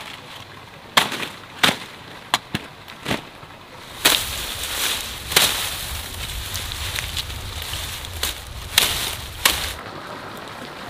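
Leaves rustle as a bundle of cut grass is handled.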